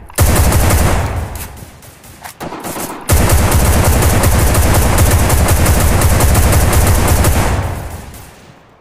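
A rifle fires in rapid automatic bursts, loud and close.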